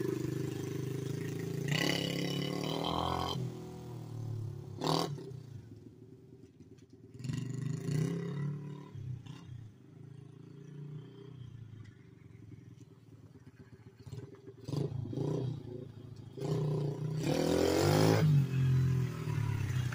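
A small motorbike engine buzzes and revs, coming near and going away.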